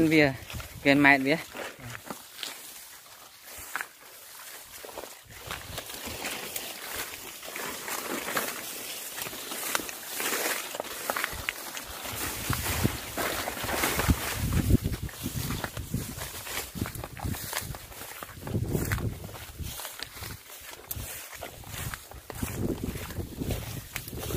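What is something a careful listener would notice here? A young man talks calmly and close to the microphone, outdoors in wind.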